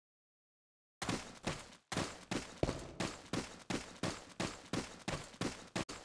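Footsteps thud steadily on a stone floor in an echoing space.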